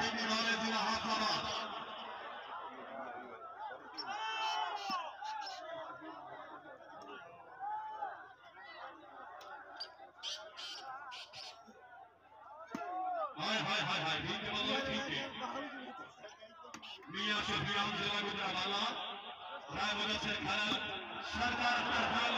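A large outdoor crowd cheers and shouts loudly in bursts.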